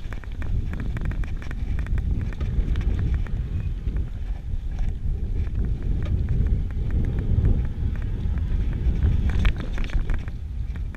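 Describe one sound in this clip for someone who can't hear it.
A bicycle's frame and chain clatter over bumps.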